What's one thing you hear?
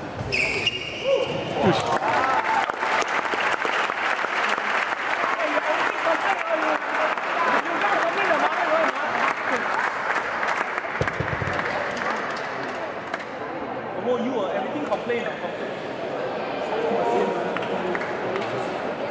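A crowd of spectators chatters throughout.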